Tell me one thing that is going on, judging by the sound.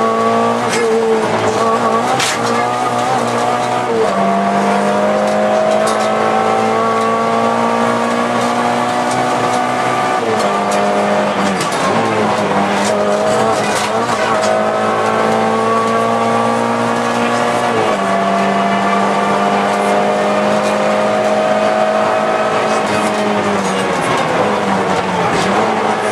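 A car engine roars loudly from inside the cabin, revving up through the gears and dropping with each shift.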